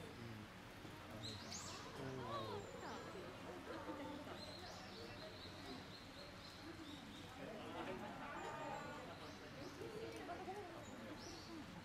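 A panda crunches and chews bamboo.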